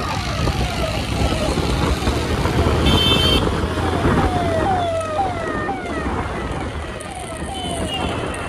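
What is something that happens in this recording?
An ambulance siren wails close by with quick falling sweeps.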